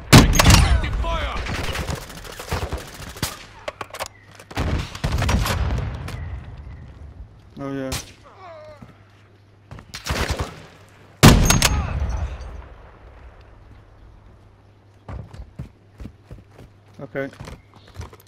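A rifle bolt clicks as it is cycled.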